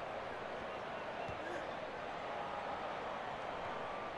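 A boot kicks a ball with a dull thud.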